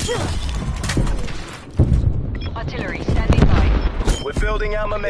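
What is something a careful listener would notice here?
Gunshots crack and boom loudly.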